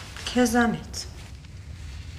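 A woman speaks briefly in a soft voice, close by.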